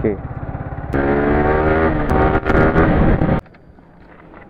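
A motorcycle engine roars and revs up close.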